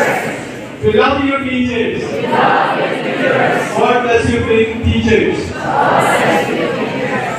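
A woman speaks through a loudspeaker in a large echoing hall.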